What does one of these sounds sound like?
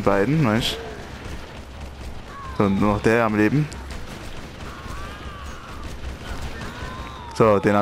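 Guns fire rapid shots.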